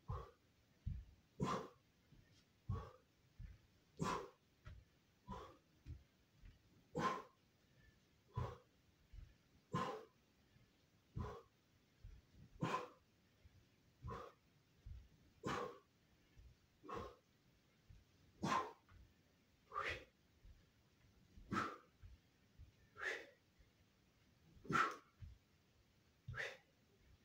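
A young man exhales sharply in quick bursts.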